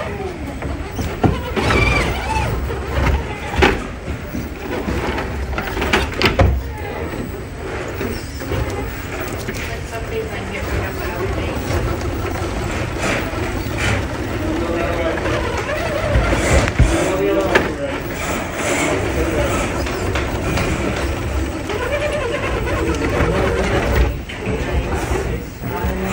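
A small electric motor whirs and strains in bursts.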